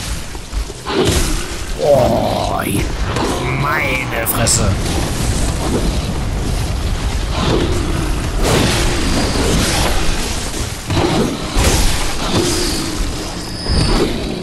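Blades slash and strike in a fight.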